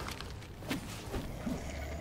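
Fire bursts with a whoosh.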